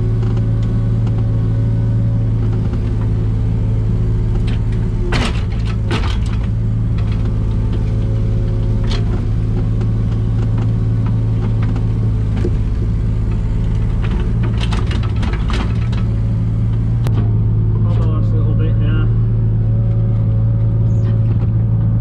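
An excavator engine hums and rumbles steadily close by.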